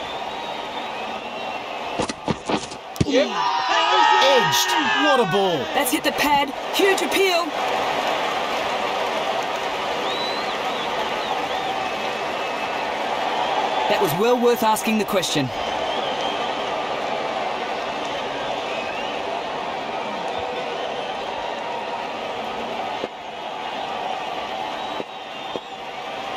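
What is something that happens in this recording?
A large crowd murmurs and cheers steadily outdoors.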